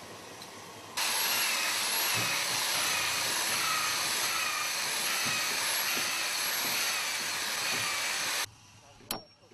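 An electric drill bores into a wooden plank.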